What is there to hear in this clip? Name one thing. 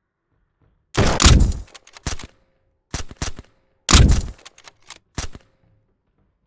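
A gun fires in loud, sharp bursts that echo briefly.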